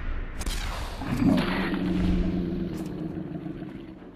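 A creature explodes in a burst of energy with a roaring crackle.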